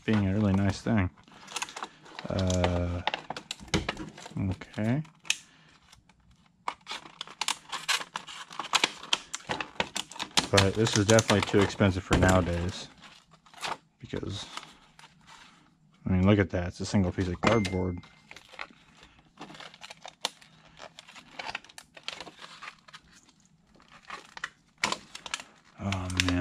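Plastic packaging crinkles and rustles between hands.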